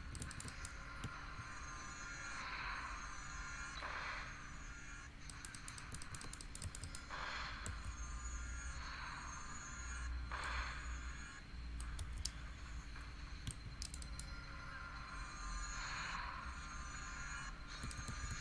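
Magic spells whoosh and crackle again and again during a fight.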